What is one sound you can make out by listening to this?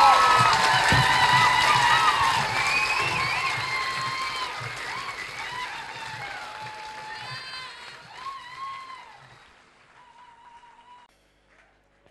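Electric guitars play loud sustained notes through amplifiers, slowly fading away.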